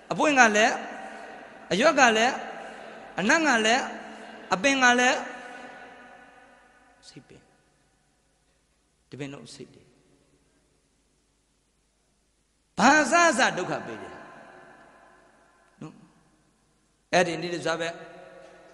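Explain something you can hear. A middle-aged man preaches emphatically into a microphone in short, echoing bursts with pauses between them.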